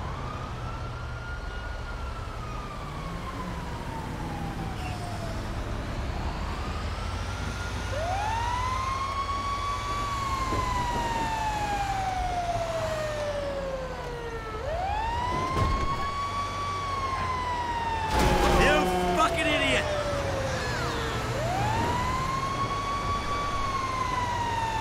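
A fire engine's engine rumbles as it drives.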